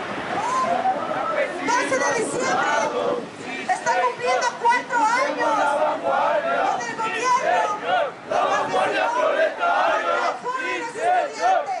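A crowd of young men chants loudly outdoors.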